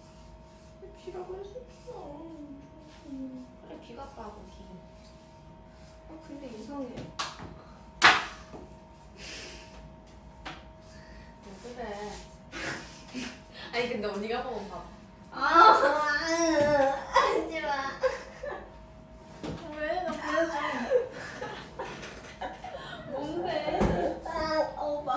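Young women talk and laugh together close by.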